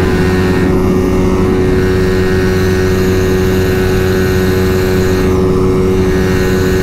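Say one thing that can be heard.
A motorcycle engine drones steadily up close while riding.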